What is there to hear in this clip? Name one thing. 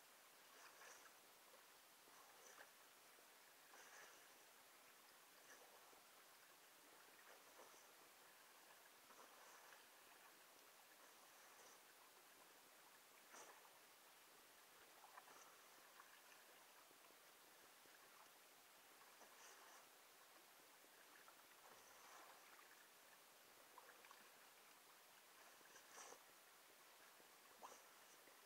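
Hands splash and slosh through water close by.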